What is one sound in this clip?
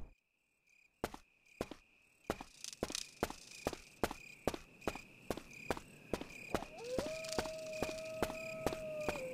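Footsteps tread steadily on a stone path.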